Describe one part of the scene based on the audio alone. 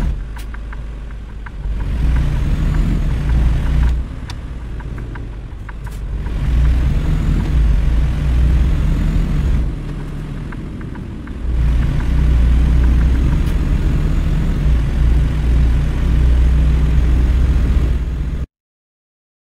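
A heavy truck engine hums low and steadily, rising and falling as it speeds up.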